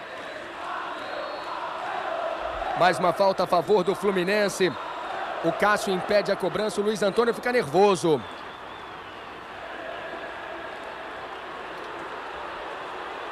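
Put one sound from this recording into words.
A large crowd murmurs and roars across a big open stadium.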